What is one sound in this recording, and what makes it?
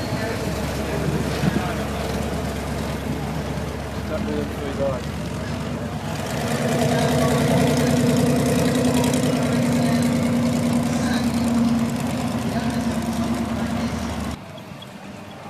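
A large truck engine rumbles and idles loudly.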